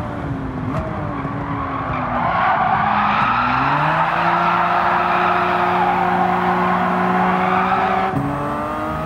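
Tyres screech through corners.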